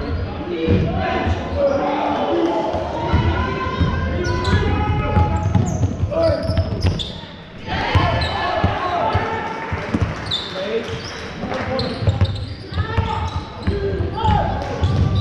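Sneakers squeak sharply on a wooden floor.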